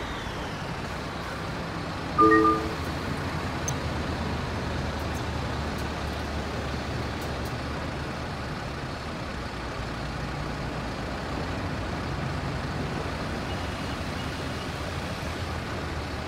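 A bus engine hums steadily while it drives.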